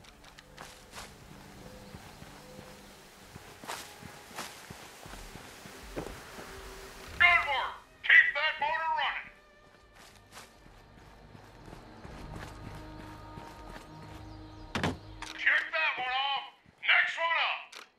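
Footsteps crunch over dry leaves and dirt.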